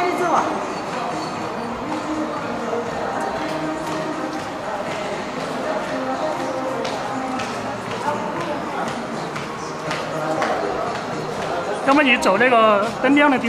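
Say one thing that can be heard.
A woman's heels click on a hard floor as she walks.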